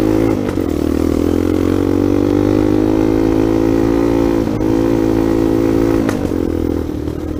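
A dirt bike engine drones at steady speed while riding on a dirt track.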